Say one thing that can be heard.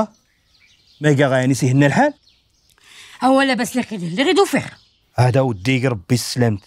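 A man speaks angrily nearby.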